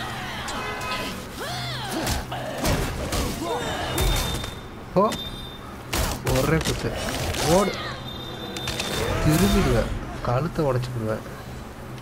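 A creature shrieks and screeches.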